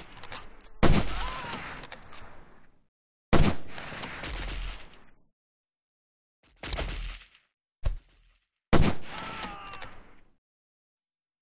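Rifle shots crack and echo with long rolling tails.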